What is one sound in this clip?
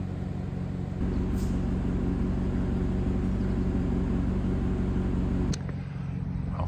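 A car engine idles with a low, steady rumble close by.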